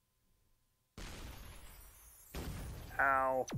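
A game shot whooshes and explodes.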